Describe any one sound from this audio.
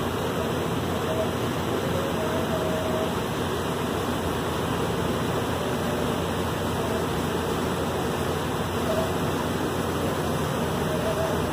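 Floodwater rushes and churns along a wide river.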